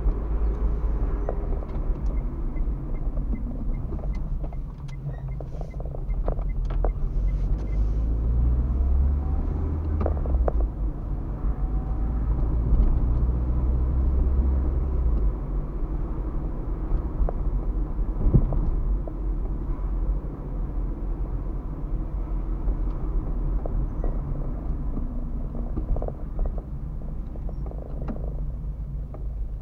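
A car engine hums steadily while driving.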